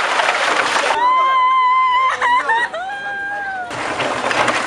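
A young woman wails and cries loudly nearby.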